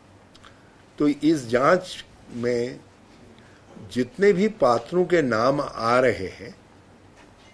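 An older man speaks calmly into a microphone, in short bursts with long pauses.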